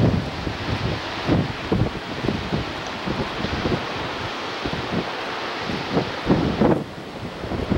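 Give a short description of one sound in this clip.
Waves break and wash over rocks below.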